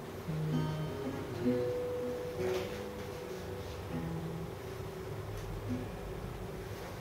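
An acoustic guitar plays slow single notes nearby.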